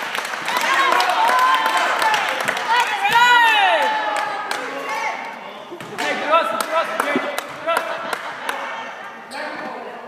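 Teenage boys call out to each other in a large echoing gym.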